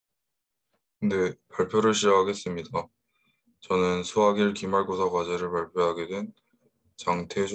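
A young man speaks calmly into a microphone, close by.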